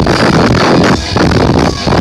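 A singer shouts into a microphone.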